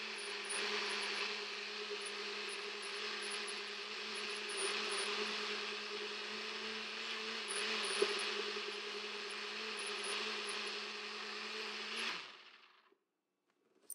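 A blender motor whirs loudly and steadily, then winds down.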